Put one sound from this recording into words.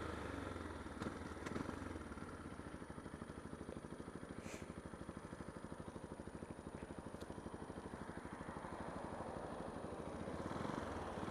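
A single-cylinder 125cc supermoto engine putters at low revs.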